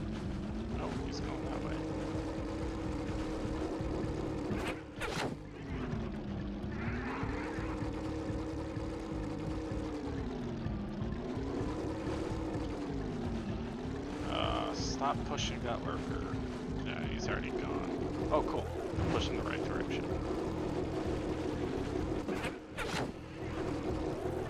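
Game music plays with a wavering tune.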